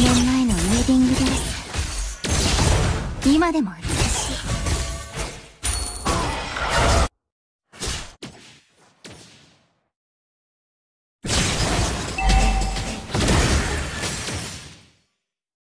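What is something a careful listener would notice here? Fantasy battle sound effects whoosh, clang and crash in quick bursts.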